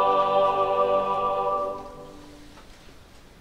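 A large choir holds a final sung chord that echoes in a large hall.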